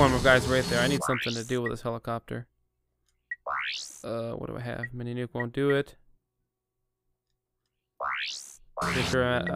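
Game menu sounds chime and whoosh.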